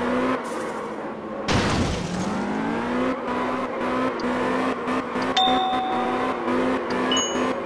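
A game car's engine revs and whines as it drifts around bends.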